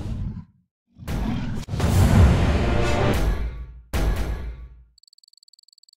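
A bright victory fanfare plays loudly.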